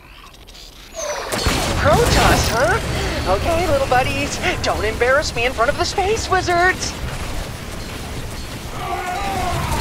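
Weapons fire and blasts go off in a game battle.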